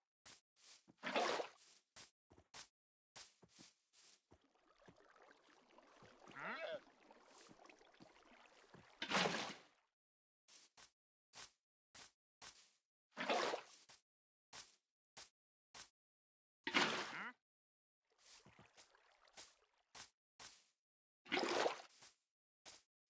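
Water splashes loudly as a bucket is emptied and filled.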